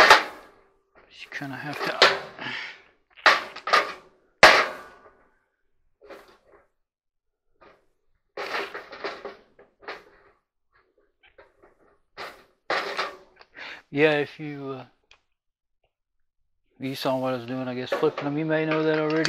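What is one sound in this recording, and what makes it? Wooden pieces knock and clack together.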